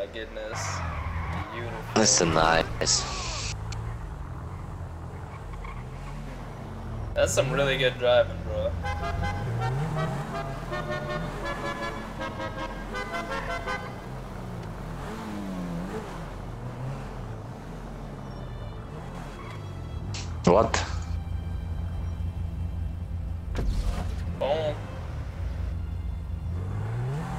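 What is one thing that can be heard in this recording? A car engine revs and roars as it speeds along.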